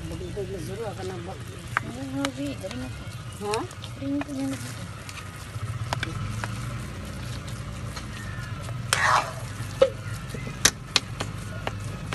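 Oil sizzles and bubbles steadily in a pan.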